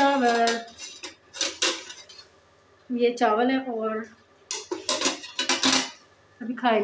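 A metal lid clanks against a cooking pot.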